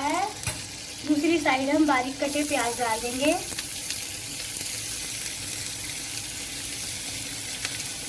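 Butter sizzles in a hot pan, growing louder.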